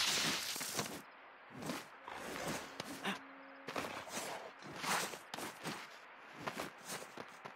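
Hands scrape and thud while climbing a wall.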